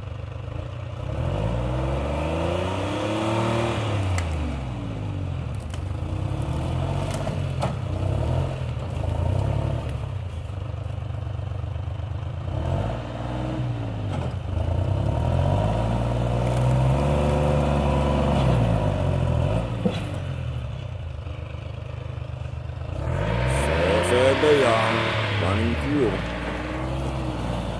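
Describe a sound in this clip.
A heavy diesel engine runs nearby, revving up and down repeatedly.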